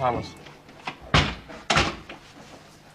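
A door opens and bangs shut.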